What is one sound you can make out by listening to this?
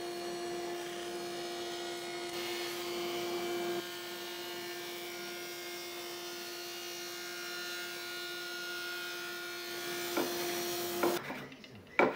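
A table saw blade spins with a steady hum.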